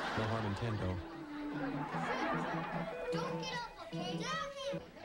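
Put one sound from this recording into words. A young child talks and laughs excitedly nearby.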